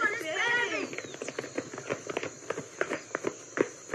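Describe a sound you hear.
Footsteps run quickly across the ground.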